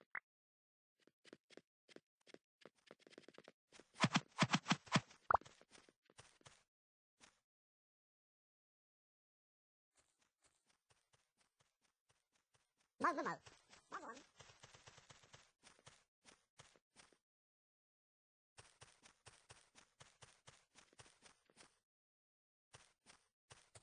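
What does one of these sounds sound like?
Quick footsteps tap steadily in a video game, stopping now and then.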